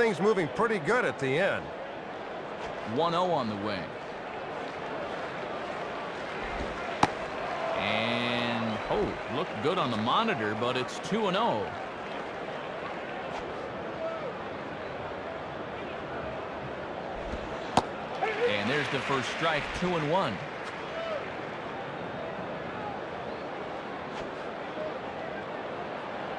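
A stadium crowd murmurs.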